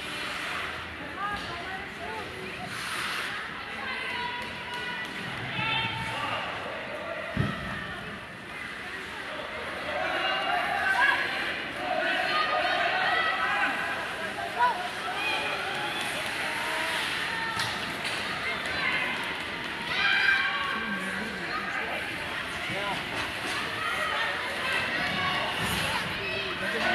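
Spectators chatter and call out in a large echoing arena.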